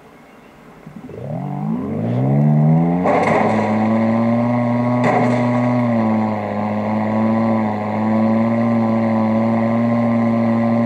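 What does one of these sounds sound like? A video game vehicle's engine revs up and then hums steadily.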